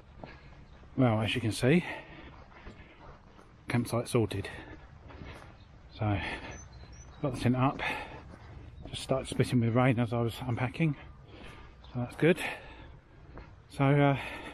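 A middle-aged man talks calmly, close by, in short bursts.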